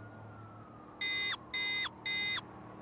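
Three short electronic alert tones beep in quick succession.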